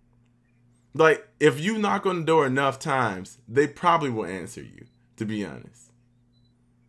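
A young man speaks with animation through a microphone on an online call.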